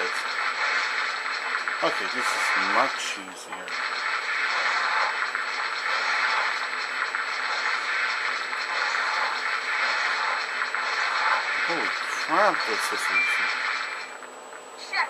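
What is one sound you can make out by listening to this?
Icy magic blasts whoosh and crackle in a rush of noise.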